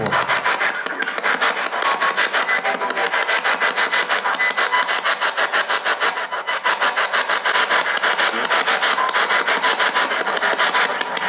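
A handheld detector crackles with fast, rapid clicks.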